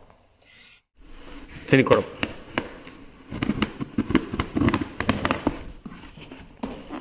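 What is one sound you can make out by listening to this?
Cardboard rips as tape is torn open on a box.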